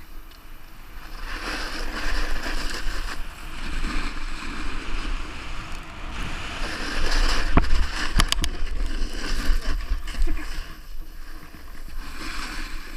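Wind rushes past a helmet during a fast descent.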